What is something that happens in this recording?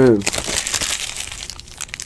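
Trading cards rustle and flick as they are sorted by hand.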